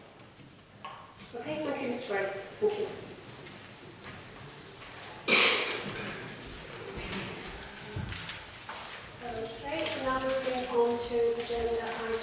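A woman speaks calmly through a microphone in a large echoing room.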